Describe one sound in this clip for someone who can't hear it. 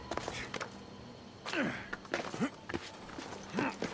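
Hands and feet scrape and thump while climbing a wall.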